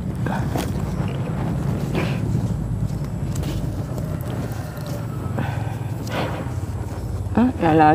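Paper banknotes rustle as they are counted.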